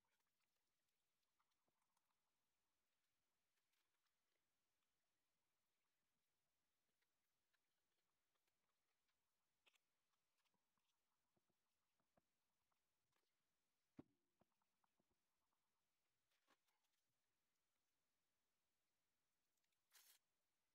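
A brush dabs and strokes softly on paper.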